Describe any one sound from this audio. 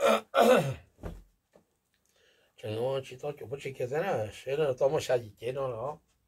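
Clothes rustle as a man folds them.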